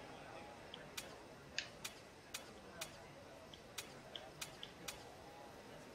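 Short menu clicks sound as a selection moves from item to item.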